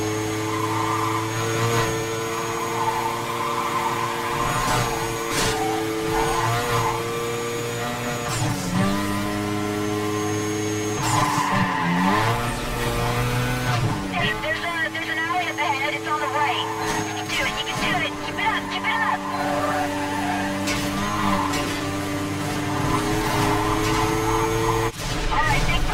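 A car engine roars at high speed, its pitch dipping and climbing with gear changes.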